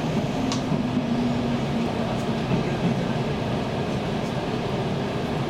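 A train rumbles steadily as it slows into a station.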